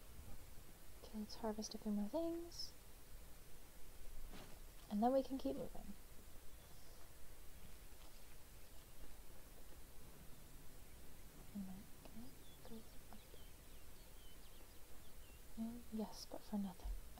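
A young woman talks calmly into a close microphone, in short bursts.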